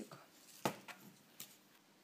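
Small beads rattle in a plastic box.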